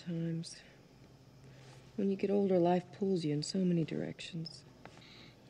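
A woman speaks softly and gently close by.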